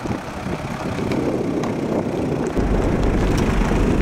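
A car engine rumbles as a vehicle drives slowly over rough gravel.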